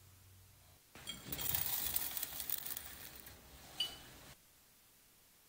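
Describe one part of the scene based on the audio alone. Biscuit crumbs tumble and scatter into a metal tin.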